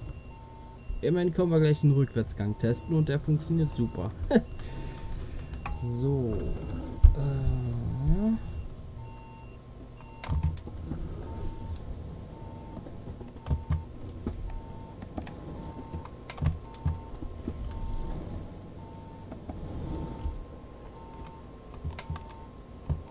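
A turn indicator ticks at an even pace.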